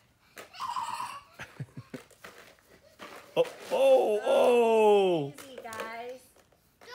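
A young child shrieks and babbles playfully nearby.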